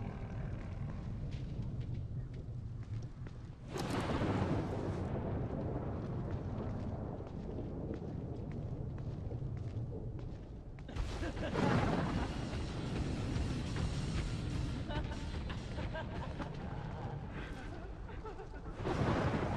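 Soft footsteps creep slowly across wet grass and pavement.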